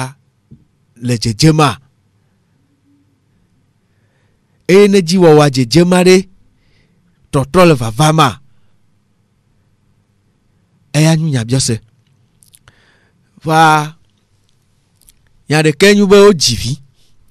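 A middle-aged woman speaks calmly into a close microphone, in short phrases with pauses.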